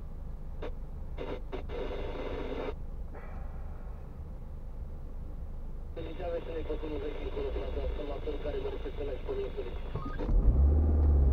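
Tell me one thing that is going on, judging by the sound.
A car engine idles quietly from inside the car.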